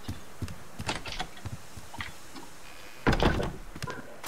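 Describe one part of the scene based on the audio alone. A wooden door swings open with a thud.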